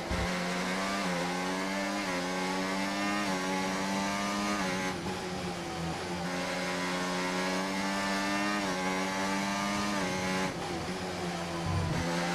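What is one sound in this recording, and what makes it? A racing car engine screams at high revs, rising through each gear and dropping sharply at every shift.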